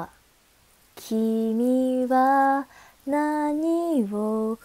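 A young woman sings brightly, close to the microphone.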